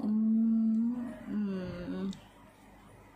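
A young woman lets out a long, loud pained groan close by.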